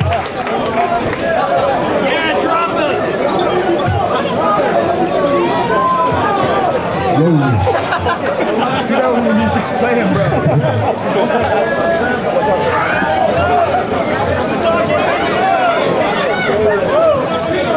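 A man talks into a microphone over loudspeakers.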